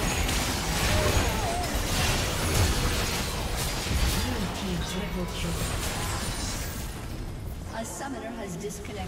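Game spell effects crash and whoosh in a fast fight.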